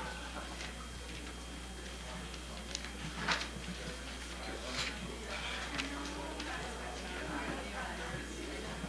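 A crowd of men and women chat and murmur all around in a large room.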